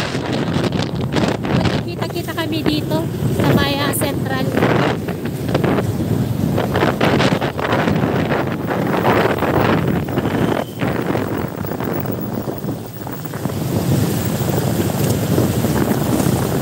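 Tyres roll steadily over a road with a loud rushing noise.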